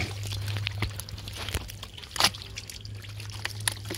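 Boots squelch and slurp through thick wet mud.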